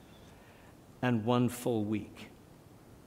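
A middle-aged man speaks calmly and deliberately into a microphone.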